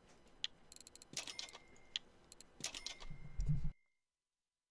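A short electronic chime sounds twice.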